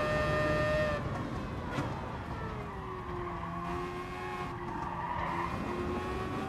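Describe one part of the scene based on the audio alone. A racing car engine slows down hard as the car brakes for a corner.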